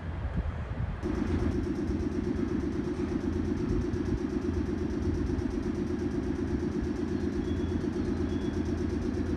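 A train engine idles with a steady, buzzing drone.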